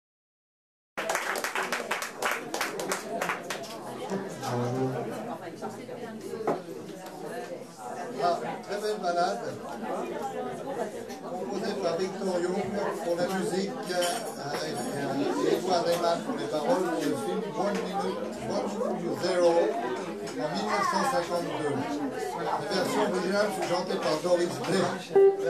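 A guitar plays jazz chords.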